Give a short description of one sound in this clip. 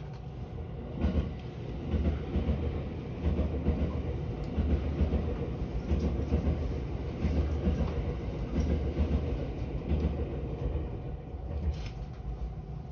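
A passing train rumbles by with rhythmic clacking wheels on the rails.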